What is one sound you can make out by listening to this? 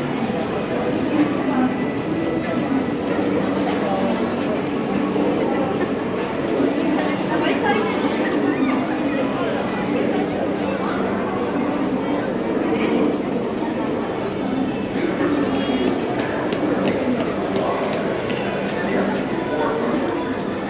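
Footsteps walk on pavement close by.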